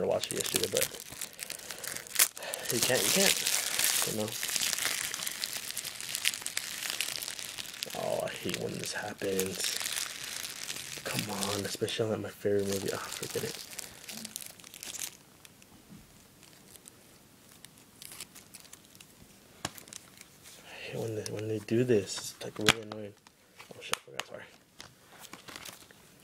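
A plastic case rattles and clicks in a hand.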